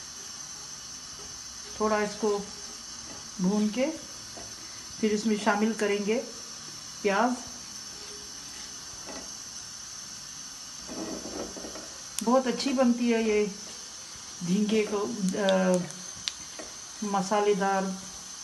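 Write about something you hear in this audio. Seeds sizzle softly in hot oil in a pan.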